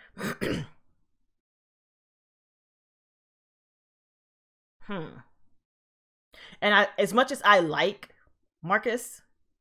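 A young woman speaks close to a microphone in short bursts, with pauses.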